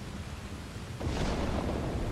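Thunder rumbles in the distance.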